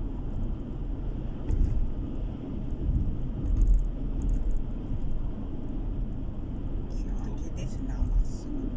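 A car drives steadily along a road, with a low rumble of its engine and tyres.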